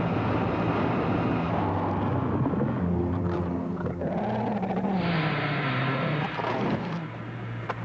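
A young man screams in agony close by.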